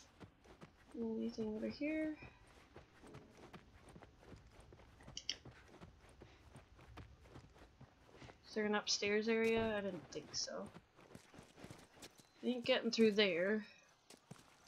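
A young woman talks into a close microphone in short bursts.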